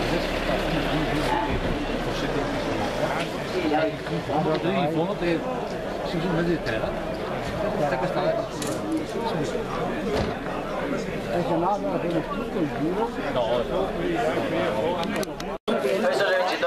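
Elderly men talk calmly nearby.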